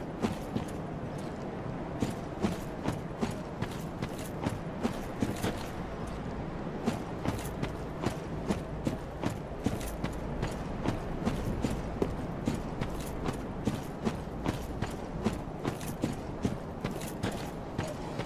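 Armoured footsteps thud steadily on grass and earth.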